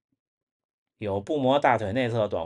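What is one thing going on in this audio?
A young man speaks calmly and close to a microphone.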